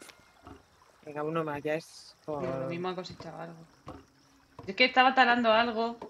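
Young women talk with animation over a microphone.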